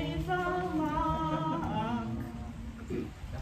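A woman sings nearby.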